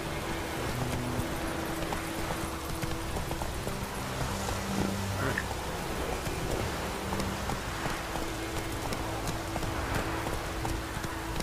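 A horse's hooves pound steadily on a dirt path at a gallop.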